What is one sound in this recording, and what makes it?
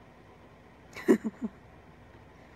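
A young woman laughs briefly, close to the microphone.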